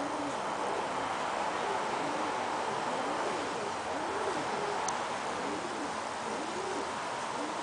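Pigeons coo with low, rolling calls close by.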